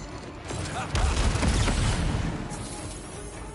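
A fiery blast roars and booms loudly.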